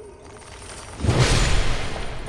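A heavy blow lands with a sudden loud crash.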